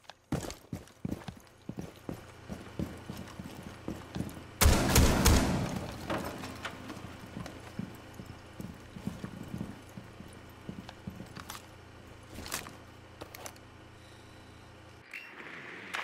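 Footsteps tap quickly on a hard floor.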